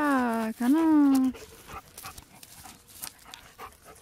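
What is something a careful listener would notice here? A dog runs through grass with rustling steps close by.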